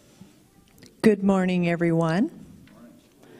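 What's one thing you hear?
A woman sings a sustained note through a microphone.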